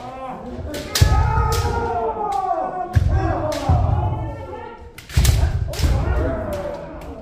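Bare feet stamp hard on a wooden floor.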